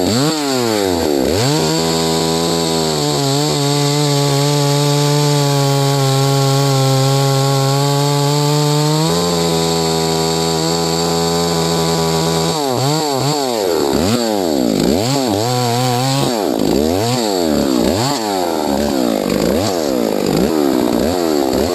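A chainsaw engine roars loudly close by, rising and falling as it revs.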